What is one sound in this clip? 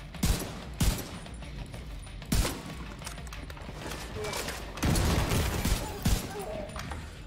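Gunshots ring out sharply a few times.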